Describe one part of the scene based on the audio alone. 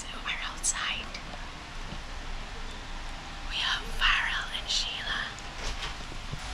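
A woman whispers close to a microphone.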